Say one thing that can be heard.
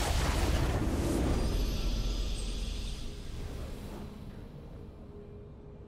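A game's triumphant victory sound swells and then fades away.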